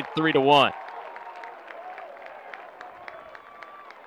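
Young men cheer and shout in celebration outdoors.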